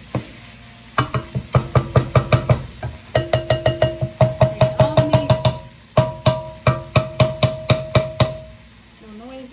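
A utensil knocks rapidly against a pan.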